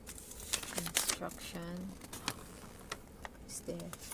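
Paper rustles and crackles as it is unfolded.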